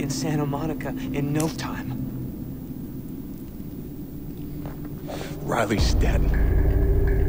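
A young man speaks quietly and earnestly, close by.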